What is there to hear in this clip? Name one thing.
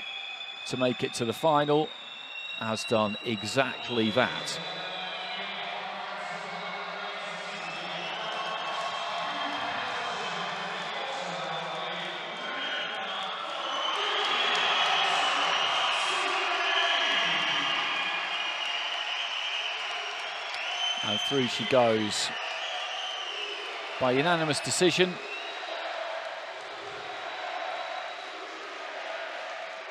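A crowd cheers and applauds in a large echoing arena.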